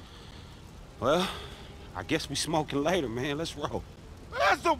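A man speaks casually nearby.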